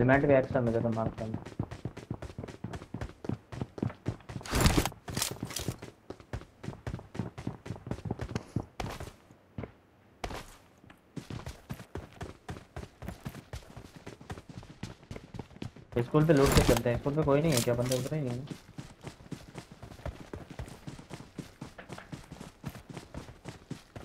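Footsteps run quickly over hard ground and grass.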